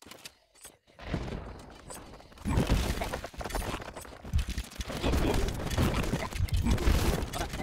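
Weapons clash and thud in a busy battle.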